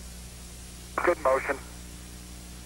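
A man speaks briefly over a radio link.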